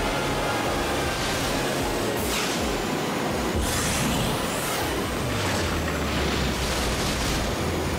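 Wooden crates smash apart as the racer crashes through them.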